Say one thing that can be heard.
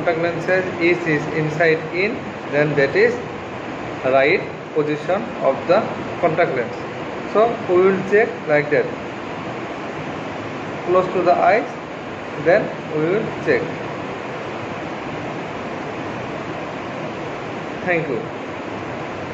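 A man speaks calmly and close up, explaining.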